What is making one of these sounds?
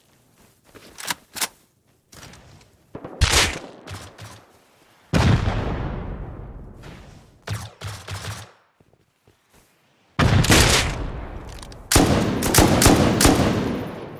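A rifle's metal action clicks and clacks as it is reloaded.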